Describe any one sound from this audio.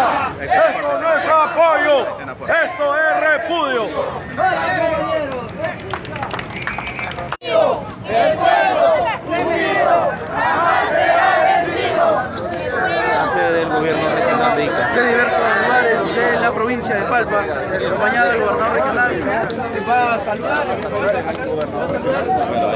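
A crowd of men and women shouts and chants outdoors.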